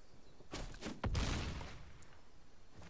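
A game sound effect booms with a heavy thud as a card strikes.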